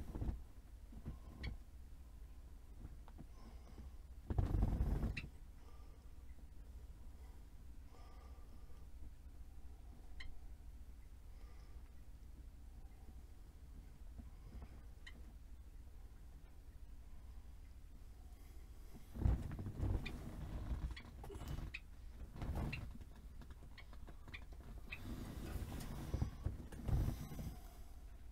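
Clothing rustles and things bump as a man moves about close by.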